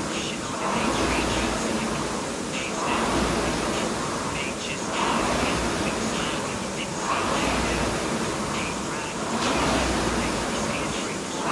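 A rowing machine's flywheel whooshes in a steady rhythm of strokes.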